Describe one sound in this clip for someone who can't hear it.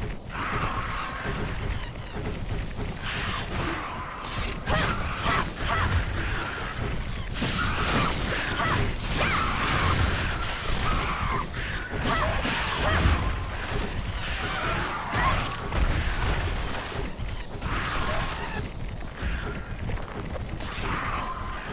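Reptile creatures screech and chirp.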